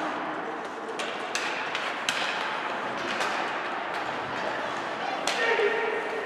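Hockey sticks clack against the puck.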